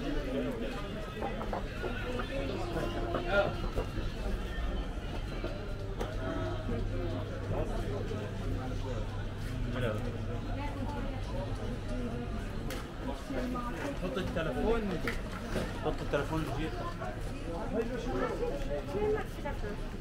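Young men talk nearby in a busy street.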